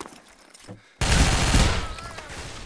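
A rifle fires a loud burst of shots.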